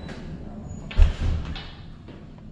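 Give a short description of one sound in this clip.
A door swings open with a thud.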